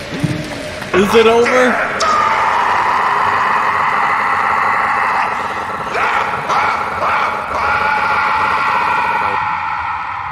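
A young man yells loudly into a close microphone.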